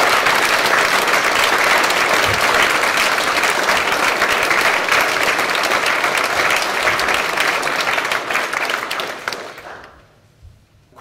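An audience applauds loudly in a room.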